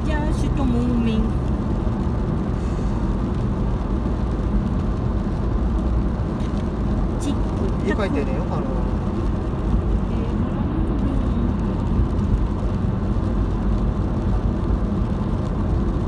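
A car engine hums with a low, steady road rumble from inside the car.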